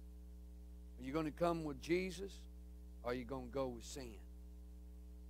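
A man speaks calmly through a microphone in short phrases.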